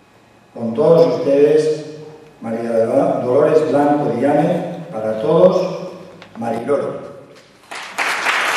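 A middle-aged man reads aloud calmly into a microphone.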